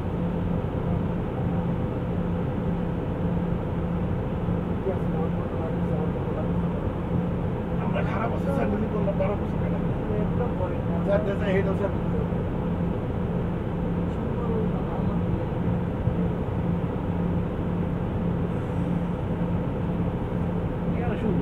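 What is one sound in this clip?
A vehicle engine hums steadily from inside a moving car.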